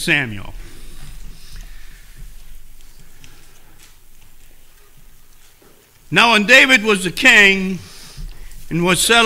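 An elderly man speaks slowly and calmly through a microphone in a room with a slight echo.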